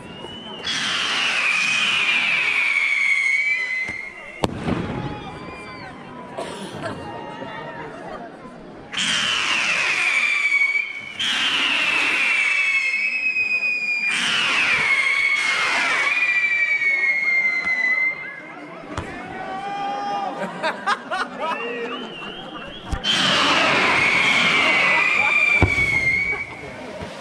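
Whistling firework rockets shriek, each pitch falling as it rises.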